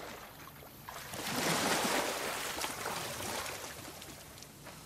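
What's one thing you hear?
Water splashes and drips as someone climbs out onto the bank.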